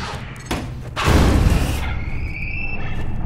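A wooden crate bangs and clatters as it is flung away.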